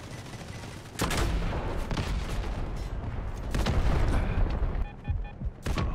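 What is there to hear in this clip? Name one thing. Gunfire and explosions boom loudly.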